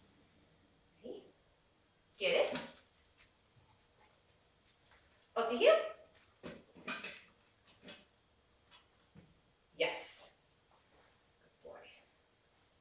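A young woman speaks to a dog in short, lively bursts nearby.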